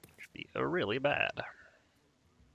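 A young man speaks briefly and with animation into a headset microphone.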